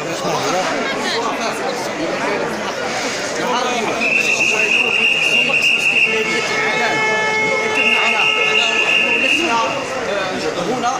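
A crowd of people talks and murmurs around the speaker.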